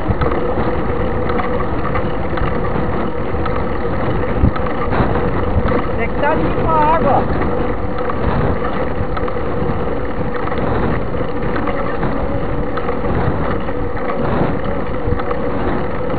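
Tyres roll on asphalt with a constant rumble.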